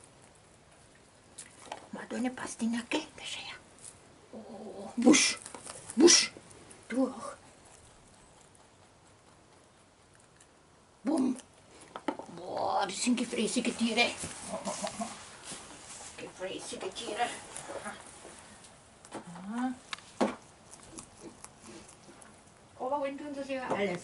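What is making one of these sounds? Dry straw rustles as rabbits hop and shuffle through it.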